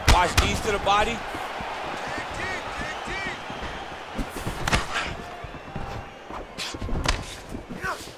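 Punches land with sharp, heavy thuds.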